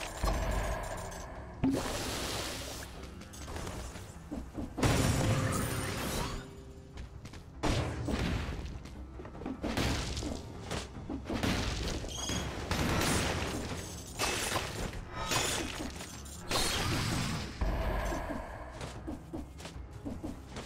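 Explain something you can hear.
Game sound effects of blades slashing and blasts burst in quick bursts.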